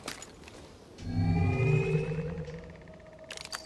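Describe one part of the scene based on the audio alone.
A deep whoosh swells and fades.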